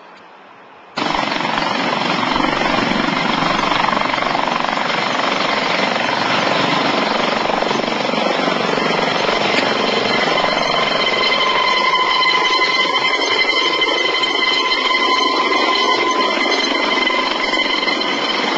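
A twin-turbine helicopter roars and whines as it lifts off and climbs.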